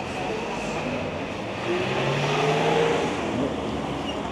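A car drives past on a street.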